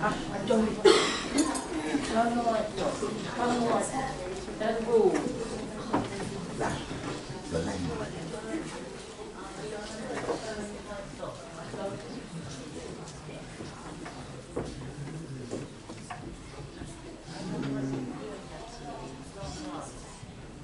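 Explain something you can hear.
A crowd chatters in a large, echoing hall.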